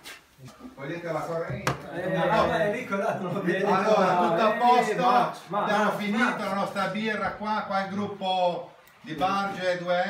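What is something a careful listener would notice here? A group of men sing together loudly.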